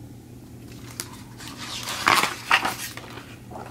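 A book page turns with a soft papery rustle.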